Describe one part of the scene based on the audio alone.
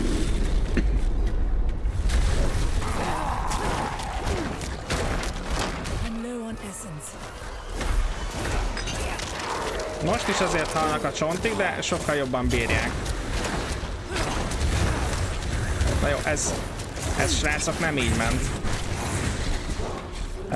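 Blows and magic crash and crackle in a fight.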